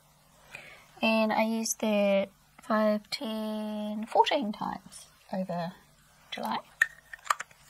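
A middle-aged woman speaks calmly and close to a microphone.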